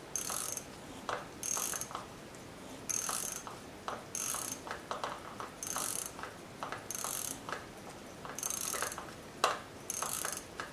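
Small metal parts of a watch click and rasp as fingers work on them, in a steady repeating rhythm.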